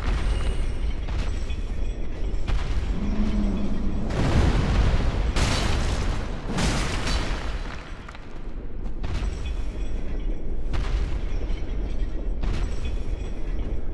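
Flames roar and burst in blasts.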